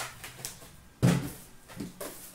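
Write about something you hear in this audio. A cardboard box is knocked with a dull thump.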